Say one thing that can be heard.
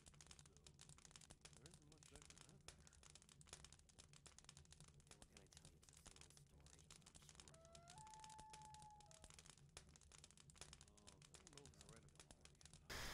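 A campfire crackles and pops steadily.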